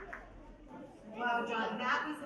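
A woman speaks calmly into a microphone, heard through loudspeakers.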